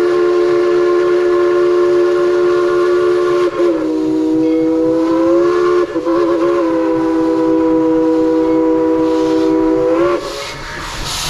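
A steam locomotive whistle blows long and loud, dipping in pitch.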